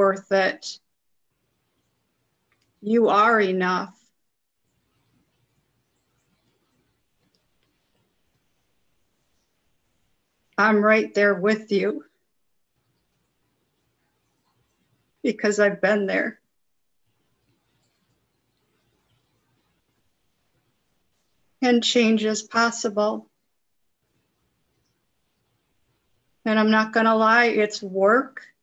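A woman speaks calmly in short bursts over an online call.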